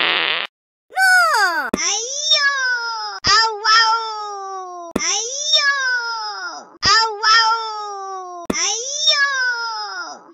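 A cartoon cat yowls in repeated falling cries.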